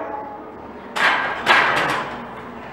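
A loaded barbell clanks as it is set back onto a rack.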